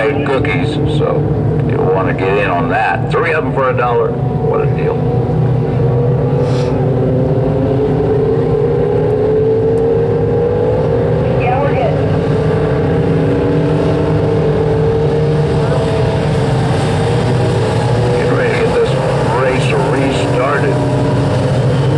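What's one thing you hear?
Race car engines roar steadily around a dirt track outdoors.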